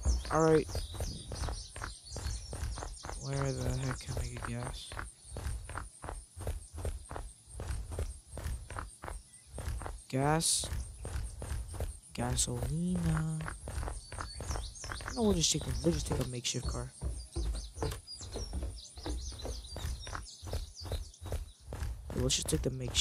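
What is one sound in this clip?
Quick footsteps run over a hard floor.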